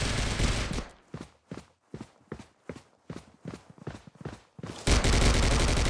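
Footsteps tread quickly on a hard floor.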